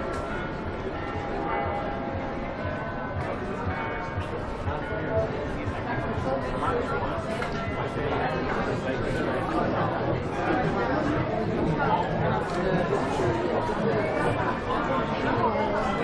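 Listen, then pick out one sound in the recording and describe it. Many people chatter all around outdoors, close by.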